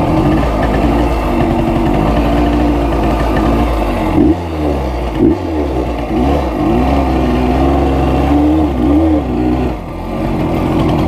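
A motorcycle engine idles and revs up close.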